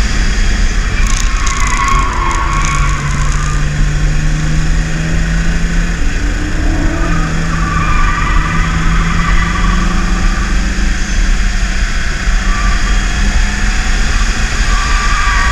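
Wind and road noise roar steadily inside a moving car.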